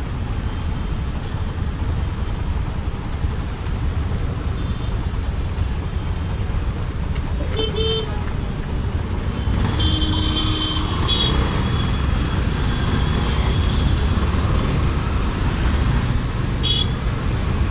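Motorbike engines idle and rev in traffic.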